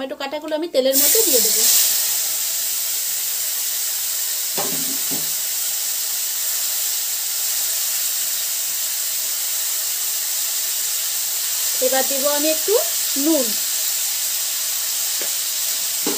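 Tomatoes drop into hot oil and sizzle loudly and steadily.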